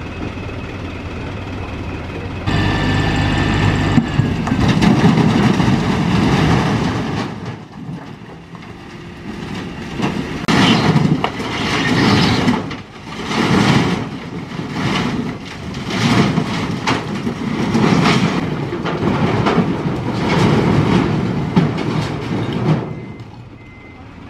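A truck engine runs with a low, steady rumble.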